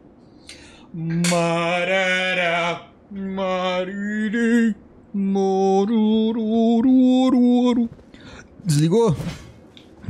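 A young man sings loudly and with feeling into a close microphone.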